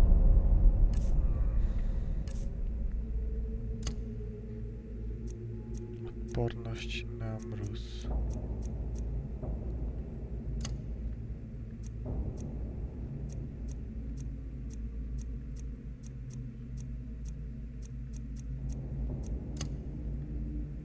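Soft menu clicks tick as a list is scrolled through.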